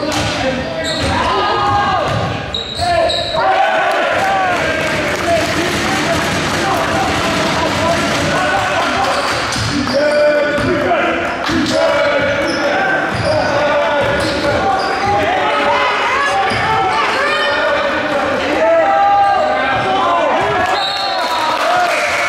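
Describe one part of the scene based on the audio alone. Sneakers squeak sharply on a hard gym floor in a large echoing hall.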